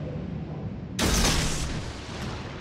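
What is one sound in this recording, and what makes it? Heavy ship guns fire a loud booming salvo.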